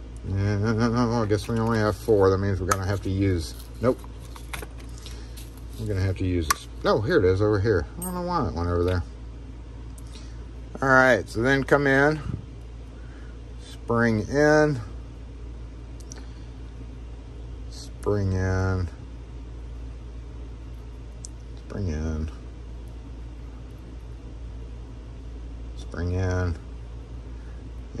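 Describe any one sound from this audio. Small metal lock parts click and clink against each other.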